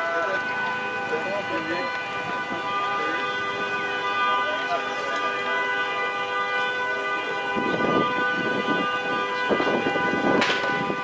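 Flames roar and crackle as a fire burns.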